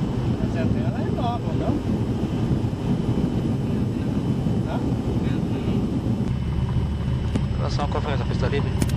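A small plane's engine drones steadily up close.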